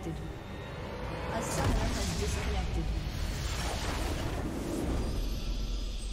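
Game sound effects crash and boom as a base explodes.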